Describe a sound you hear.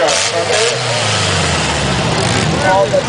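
Car engines rumble and roar.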